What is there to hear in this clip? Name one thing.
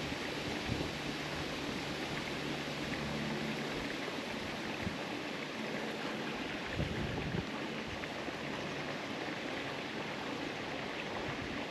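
A fishing reel whirs softly as its handle turns.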